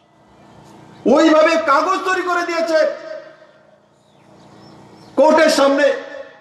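A man speaks loudly and forcefully into a microphone over a loudspeaker, outdoors.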